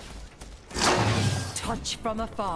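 A magic orb is hurled with a loud whoosh.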